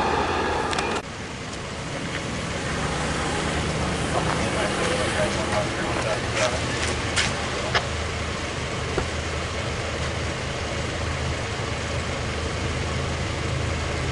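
An idling car engine hums low and steadily.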